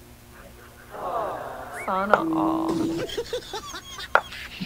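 A middle-aged woman laughs softly.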